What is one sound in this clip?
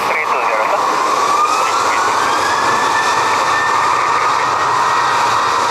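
A jet engine whines loudly with a rising high tone.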